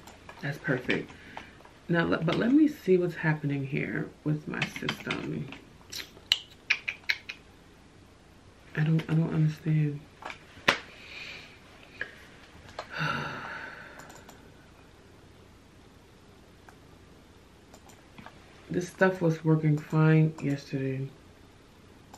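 A woman speaks calmly and thoughtfully close by.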